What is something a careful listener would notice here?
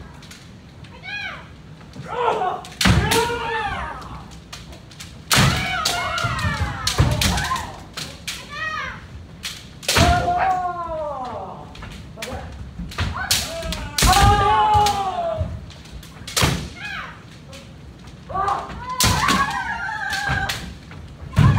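Fencers shout loud drawn-out cries in a large echoing hall.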